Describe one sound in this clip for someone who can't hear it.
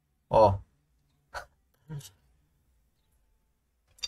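A spoon scrapes against a bowl.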